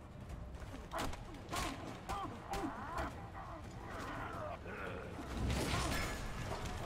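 Game fighters grunt and shout in combat.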